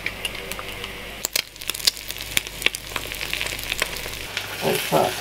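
An egg sizzles and crackles in hot oil.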